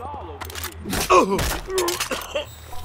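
A heavy punch thuds as a man is knocked down.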